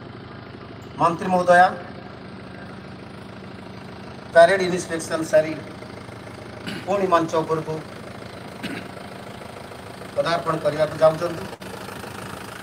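A man announces loudly over a loudspeaker, with echo outdoors.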